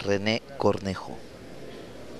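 A man speaks loudly and briefly through a microphone.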